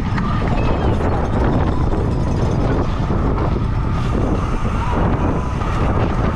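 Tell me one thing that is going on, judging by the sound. Wind rushes loudly past a bicycle rider.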